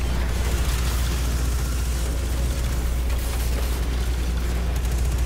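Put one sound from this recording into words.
Energy weapons fire and crackle in rapid bursts.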